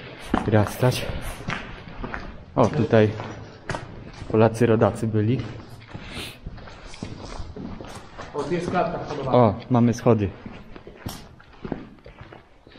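Footsteps crunch over debris in a large, echoing space.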